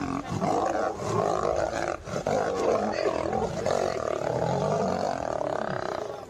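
Lions snarl and roar while fighting up close.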